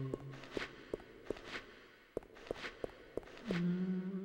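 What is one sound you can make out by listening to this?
Footsteps clack on a hard floor.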